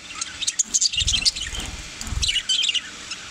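Wings flutter as a budgerigar flies off a perch.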